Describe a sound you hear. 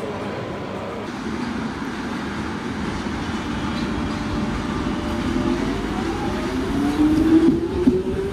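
An electric underground train pulls away, its motors whining higher as it gathers speed.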